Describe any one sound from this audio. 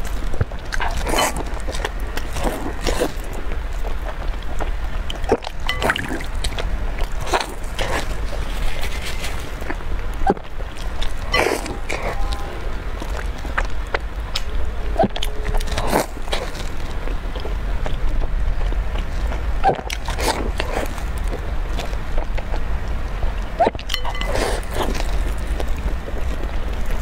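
A young woman chews and slurps wet bread close to a microphone.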